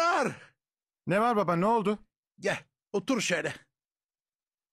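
A man speaks sternly, close by.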